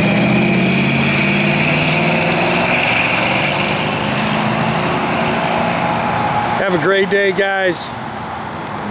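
A deep car engine rumbles as the car pulls away and fades.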